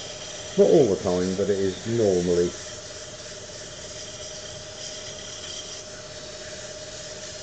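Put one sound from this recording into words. A chisel scrapes against spinning wood.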